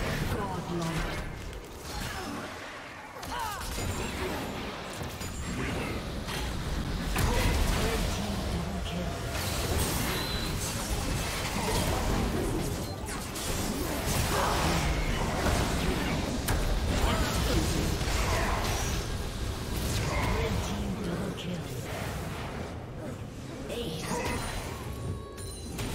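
Video game battle effects crash and whoosh as spells and weapon hits clash.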